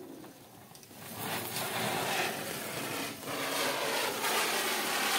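A firework fountain hisses and crackles loudly, echoing between walls.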